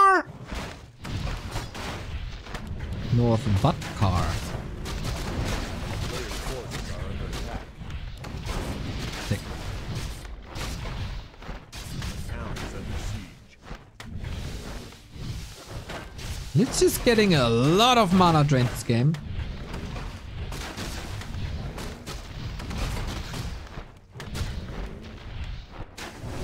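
Swords clash and spells whoosh in a busy battle.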